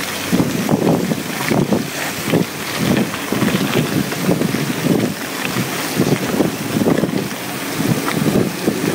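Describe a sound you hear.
Bicycle tyres crunch and rattle over a dirt track.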